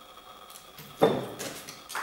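A glass bottle clinks against a hand.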